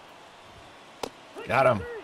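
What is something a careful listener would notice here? A bat cracks against a ball.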